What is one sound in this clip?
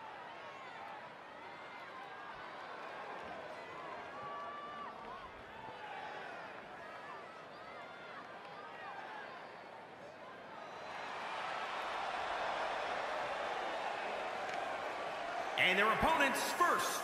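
A large crowd cheers in a big arena.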